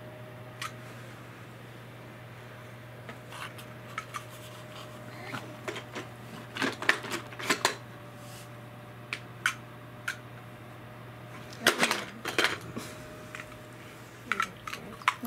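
Plastic toys clatter and knock together.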